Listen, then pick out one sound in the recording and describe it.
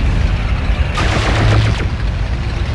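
An electric weapon crackles and zaps.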